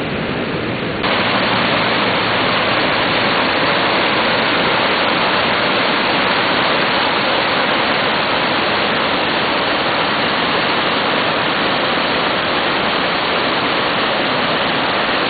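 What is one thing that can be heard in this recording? Fast water rushes and churns loudly nearby.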